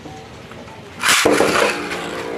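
A ripcord zips out of a spinning-top launcher.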